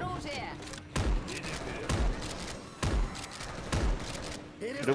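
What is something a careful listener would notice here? A shotgun fires several loud blasts.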